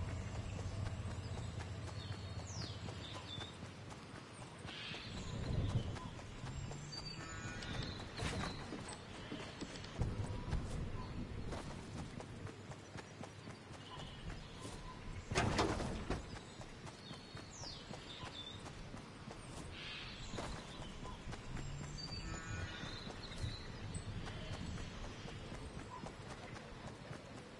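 Footsteps patter quickly over grass and dirt.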